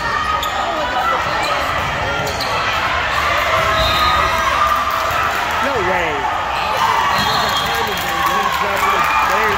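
A crowd of young girls chatter and call out in a large echoing hall.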